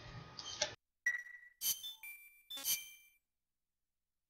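Short electronic chimes ring out.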